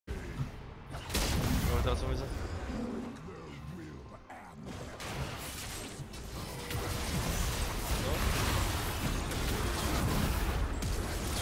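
Magic effects whoosh and crackle in a fight.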